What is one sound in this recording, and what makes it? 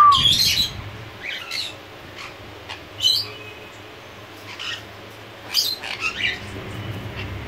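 A parrot squawks loudly in short, harsh bursts close by.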